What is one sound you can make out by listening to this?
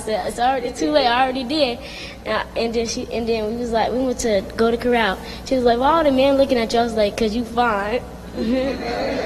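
A young woman speaks with feeling through a microphone.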